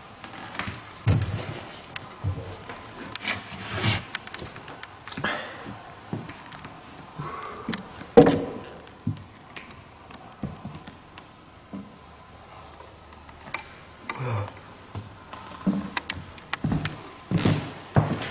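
Footsteps thud and scuff slowly on a gritty floor.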